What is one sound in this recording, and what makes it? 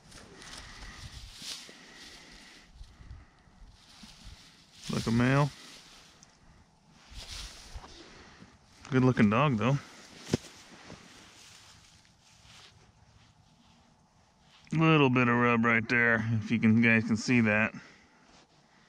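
Dry grass rustles and crackles.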